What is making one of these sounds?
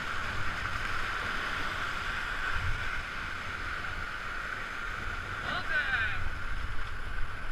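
White-water rapids rush and roar loudly.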